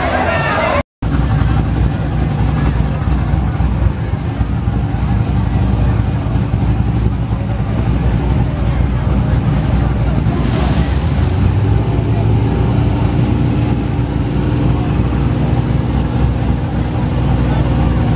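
A powerful car engine idles with a deep, loud rumble.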